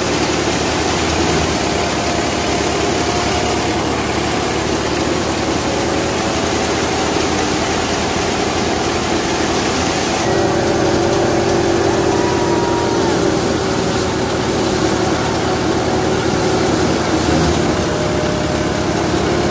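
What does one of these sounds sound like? A threshing machine roars and rattles steadily up close.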